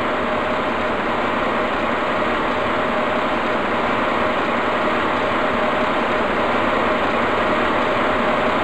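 A train rolls steadily along the rails with a constant electric hum.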